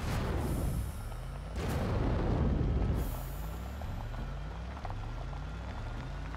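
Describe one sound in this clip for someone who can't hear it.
A buggy engine hums and revs repeatedly as it drives.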